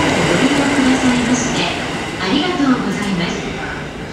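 A train arrives slowly at a platform, its wheels squealing.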